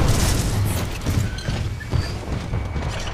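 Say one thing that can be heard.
Heavy mechanical footsteps thud and clank.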